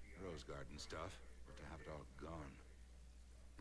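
A man speaks calmly and at length.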